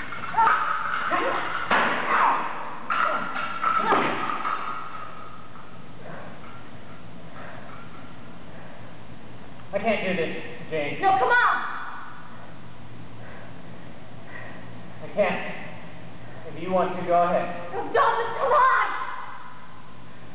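A man talks calmly, close by, in a large echoing hall.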